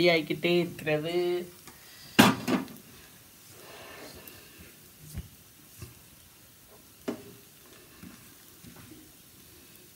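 A spatula scrapes against a hot pan.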